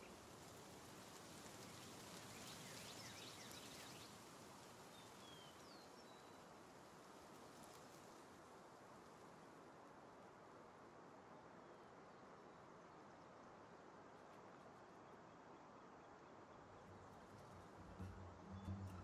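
Large wings flap.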